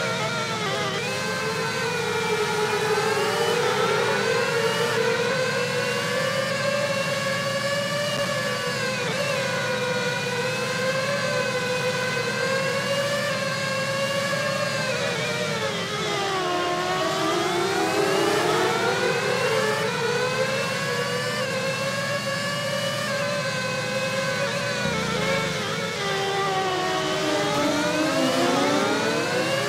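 A racing car engine whines steadily, rising and falling in pitch as the car speeds up and slows for corners.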